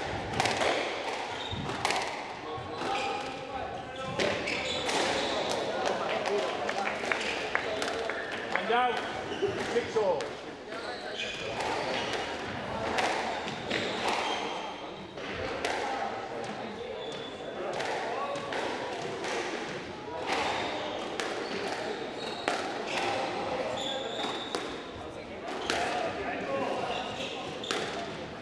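A squash ball smacks against the walls and rackets in a rally, echoing in a hard-walled court.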